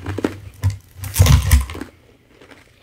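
A slab of ice scrapes across a wooden board.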